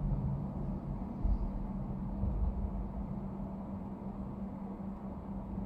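Traffic rumbles along a busy road outside.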